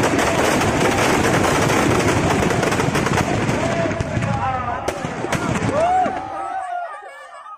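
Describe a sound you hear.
Fireworks crackle and bang in rapid bursts.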